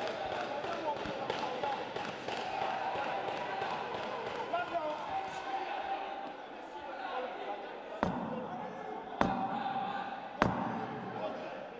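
A small crowd murmurs and shouts in an echoing hall.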